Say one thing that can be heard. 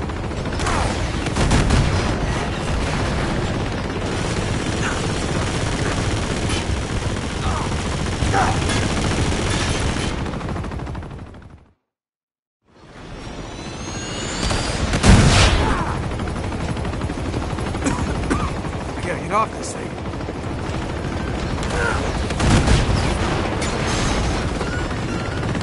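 A helicopter's rotor thumps steadily nearby.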